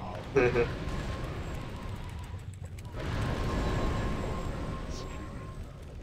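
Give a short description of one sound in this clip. Fiery spell blasts boom and crackle in a game battle.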